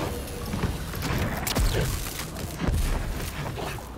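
Gunshots bang in a game.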